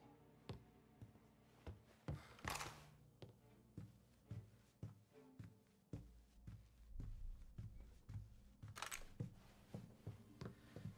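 Footsteps thud steadily on a wooden floor indoors.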